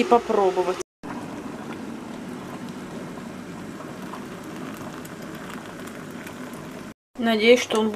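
Hot water pours from a kettle into a cup.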